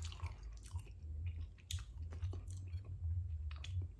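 A plastic fork clicks against a plate.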